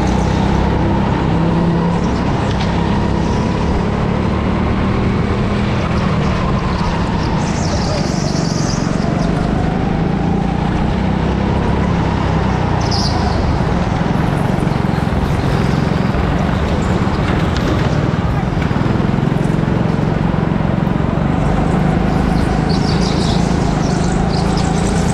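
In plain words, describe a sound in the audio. Other go-kart engines buzz nearby in a large echoing hall.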